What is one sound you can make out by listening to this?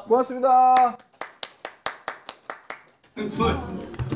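Several men clap their hands briskly.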